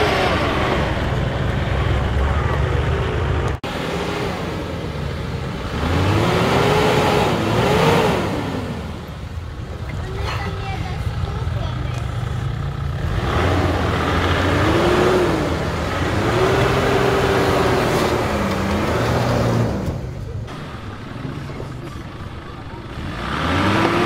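An off-road vehicle's engine rumbles and revs up and down as it climbs steep dirt.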